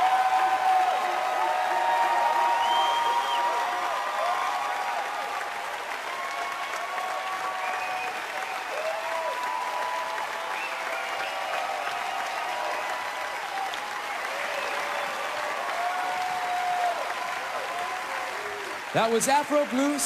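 A crowd cheers and applauds in a large hall.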